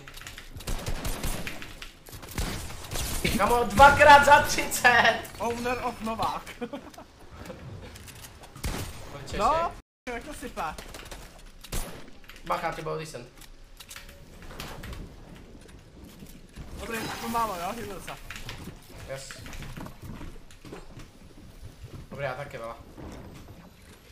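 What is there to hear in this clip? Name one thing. Gunshots crack in quick bursts in a video game.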